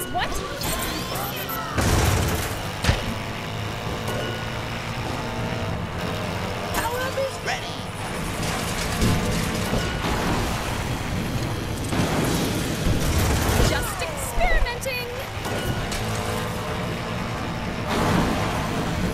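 Game engines whine and roar as karts race.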